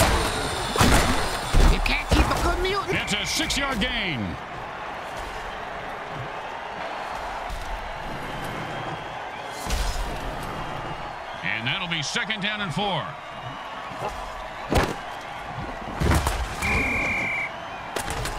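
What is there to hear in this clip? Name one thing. Armoured players crash together in hard tackles.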